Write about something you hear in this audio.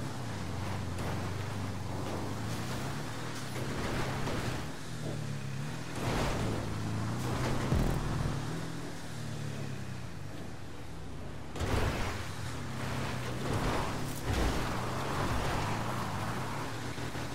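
Tyres crunch and thump over rough dirt and rocks.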